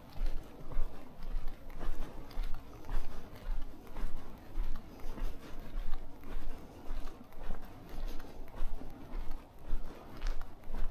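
Footsteps tap on a pavement at a brisk, steady pace.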